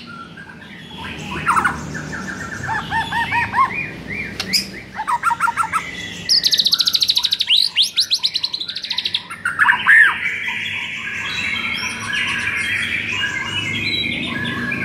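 A songbird sings loud, varied whistles, trills and chirps close by.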